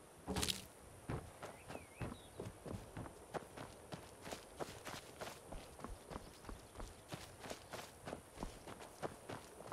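Footsteps crunch steadily over dry leaves and rough ground.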